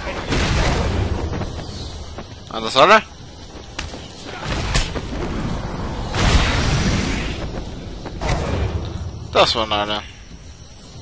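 Heavy punches and kicks land with dull thuds.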